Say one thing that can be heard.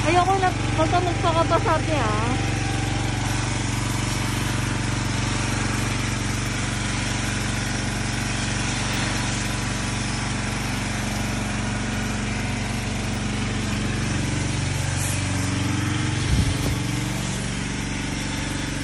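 A pressure washer sprays a hissing jet of water against a car.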